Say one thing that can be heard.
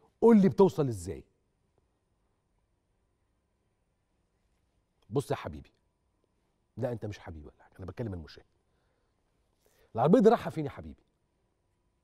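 A man speaks with animation into a microphone, with long pauses between phrases.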